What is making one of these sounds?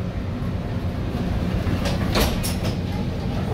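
Sliding train doors close with a thud.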